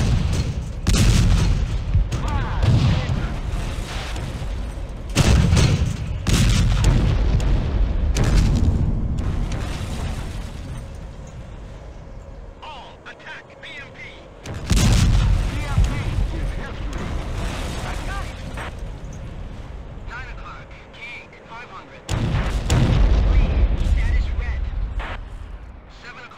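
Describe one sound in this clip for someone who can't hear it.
Heavy guns fire with deep booms that rumble away.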